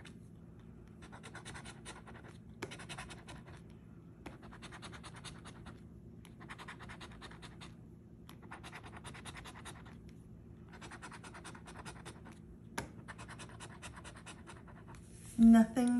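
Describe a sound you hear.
A coin scratches against a lottery ticket in short bursts.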